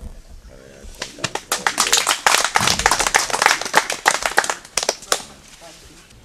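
A group of people clap their hands.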